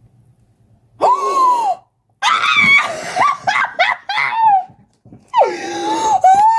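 A young woman laughs and shrieks excitedly.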